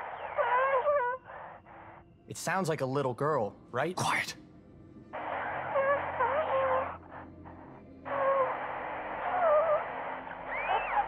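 A young girl's voice speaks faintly through a radio.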